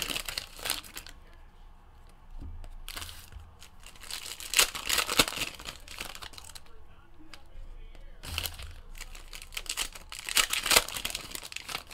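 Plastic wrapping crinkles as a pack is torn open.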